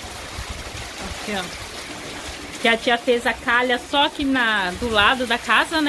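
Water gushes from a roof pipe and splashes onto the ground.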